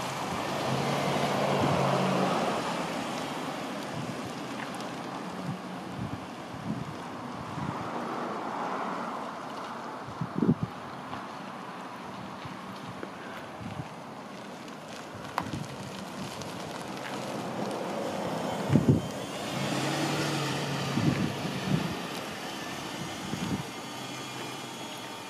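A car engine hums as the car drives away and comes back.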